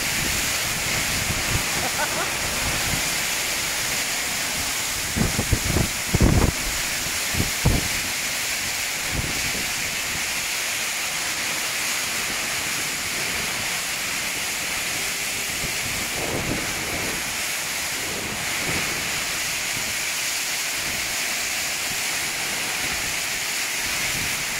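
Heavy rain roars down on a tin roof in a storm.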